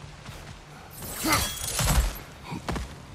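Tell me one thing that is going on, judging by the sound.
An axe whooshes through the air and strikes with a heavy thud.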